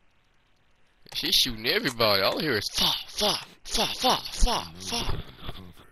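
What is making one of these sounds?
A man speaks tensely up close.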